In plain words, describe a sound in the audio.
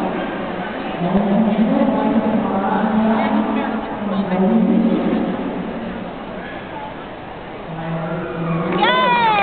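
A woman calls out to a dog with encouragement.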